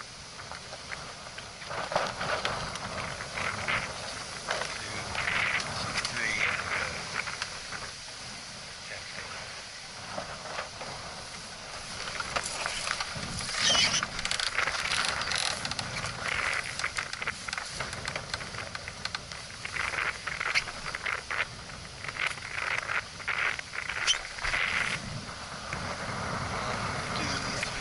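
Water laps and splashes against a small boat's hull.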